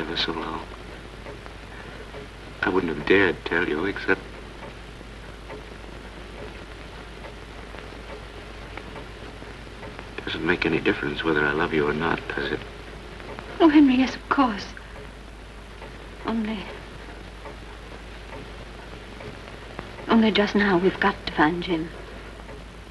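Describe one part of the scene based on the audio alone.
A woman speaks quietly and close by.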